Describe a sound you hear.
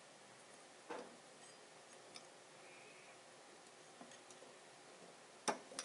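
Hands twist lens parts together with light clicks and scrapes.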